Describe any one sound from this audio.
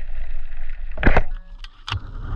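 A speargun fires with a sharp snap underwater.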